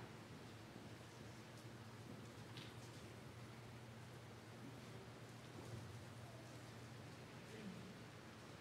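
Seated people murmur and shift quietly in a large, echoing room.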